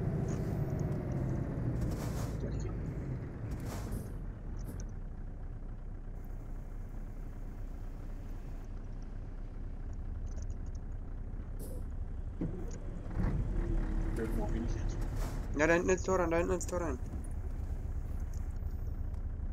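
A truck engine hums and rumbles steadily.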